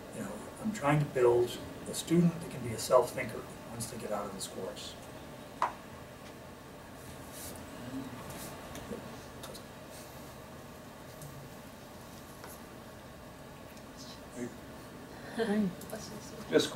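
A middle-aged man speaks calmly.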